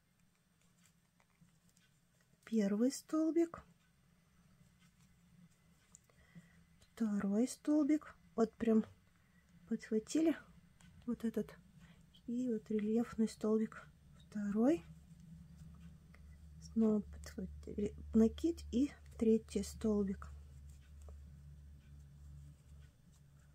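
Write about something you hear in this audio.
A crochet hook softly rubs and pulls through thick yarn.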